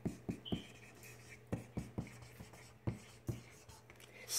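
A marker squeaks and taps across paper.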